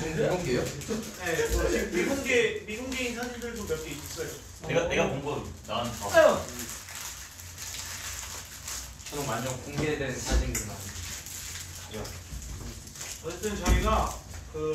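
Several young men talk and chatter with animation, close by.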